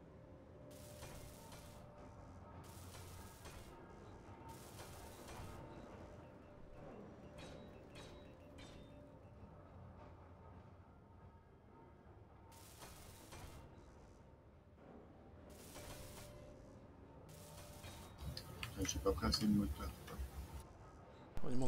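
A welding torch hisses in short, repeated bursts.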